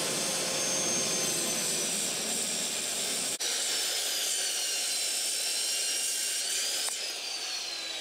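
A circular saw whines loudly as it cuts through metal.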